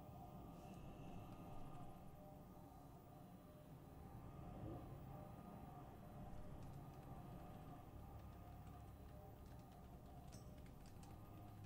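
Magic spells crackle and whoosh in bursts.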